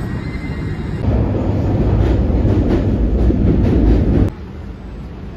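An underground train roars loudly as it runs.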